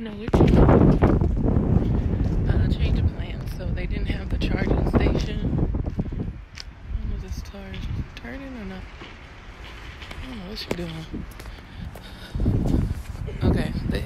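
A young woman talks casually, close to a phone microphone.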